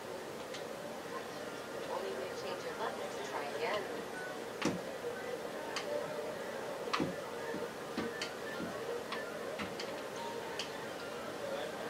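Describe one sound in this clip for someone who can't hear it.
Casino game sounds play from a television speaker.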